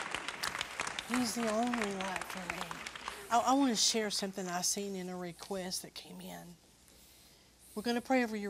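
An elderly woman speaks with animation close to a microphone.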